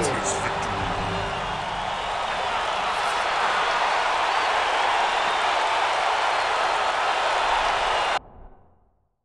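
A victory jingle plays.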